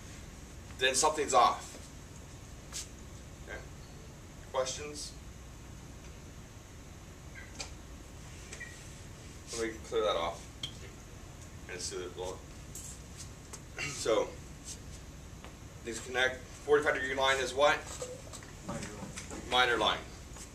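A man speaks nearby in short bursts, explaining calmly.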